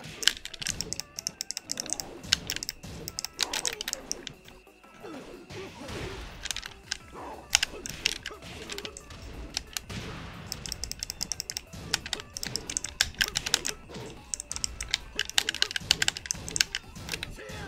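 Buttons on a game controller click rapidly.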